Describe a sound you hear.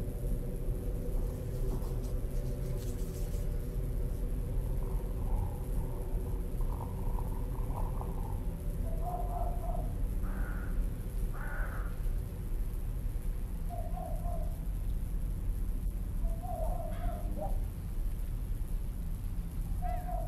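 Wind blows steadily outdoors with a low rumble.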